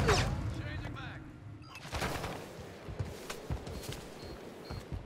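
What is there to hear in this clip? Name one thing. Gunshots crack in short bursts, with thuds and echoes.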